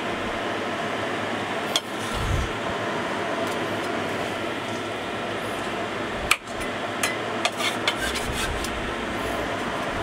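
Prawns sizzle on a hot pan.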